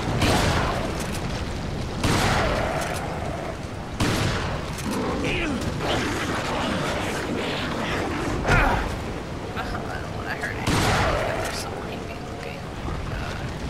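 A shotgun's pump racks with a metallic clack.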